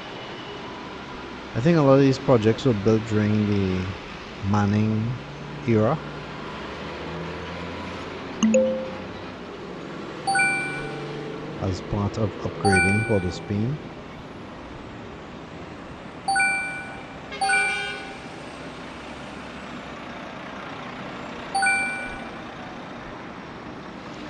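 Traffic rumbles steadily past on a busy road.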